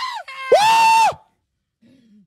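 A man shouts into a close microphone.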